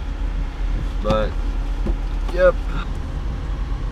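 A young man speaks briefly and casually, close by.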